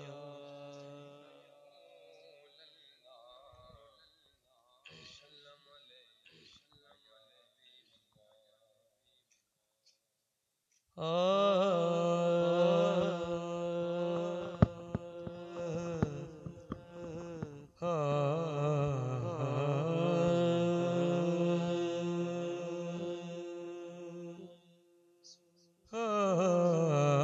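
A man sings a devotional chant loudly into a microphone, heard through loudspeakers.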